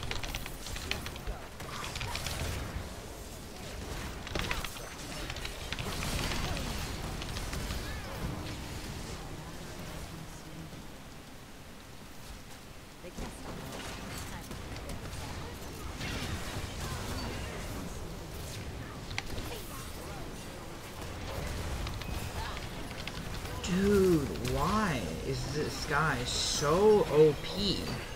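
Game spells and weapon blows clash and crackle during a fight.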